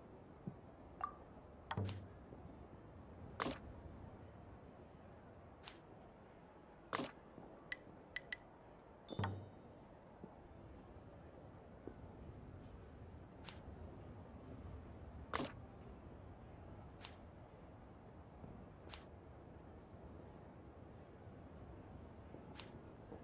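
Short game interface clicks and chimes sound now and then as panels slide into place.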